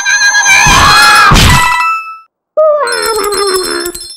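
Coins jingle and clink.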